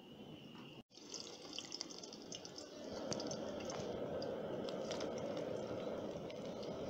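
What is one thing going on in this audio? Food sizzles and crackles in hot oil.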